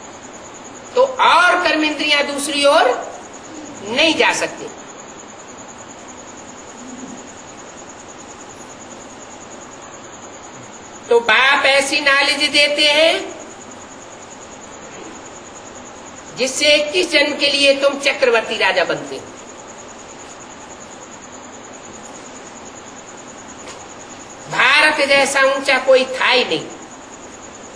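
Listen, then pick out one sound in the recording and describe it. An elderly man speaks calmly in short phrases, with long pauses between them.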